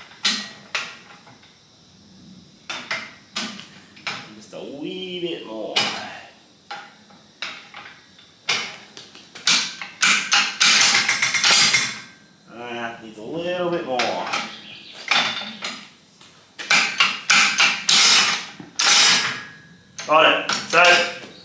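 A hand-operated metal bender clanks and ratchets as a lever is pumped.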